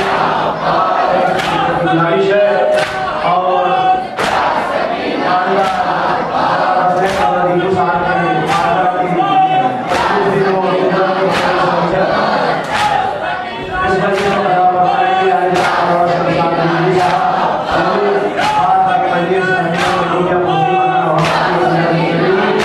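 A crowd of men chants a mournful lament in unison, in a large echoing hall.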